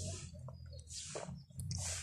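An elderly woman sips a drink noisily through a straw.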